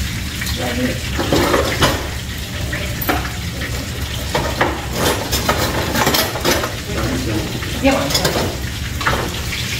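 Utensils clink against a pan.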